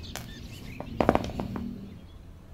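Metal pliers clack down on a hard surface.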